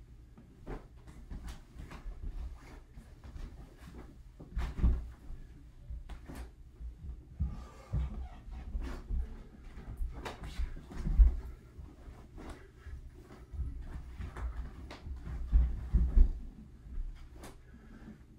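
A martial arts uniform snaps and swishes with sharp movements.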